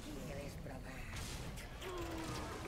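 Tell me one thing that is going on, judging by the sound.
A magical blast bursts with a crackling whoosh.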